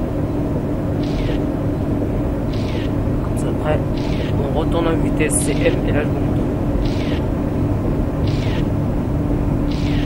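Windscreen wipers swish back and forth at an even pace.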